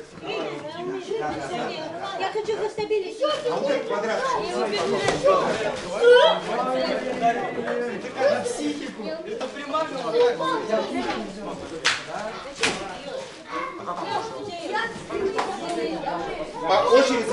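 Several boys and young men talk and call out over one another in an echoing hall.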